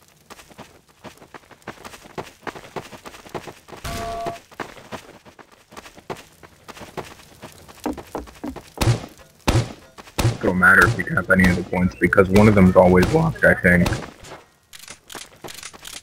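Footsteps patter quickly on dry ground.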